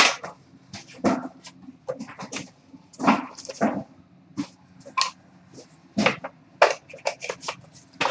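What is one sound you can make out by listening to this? A small cardboard box lid scrapes open.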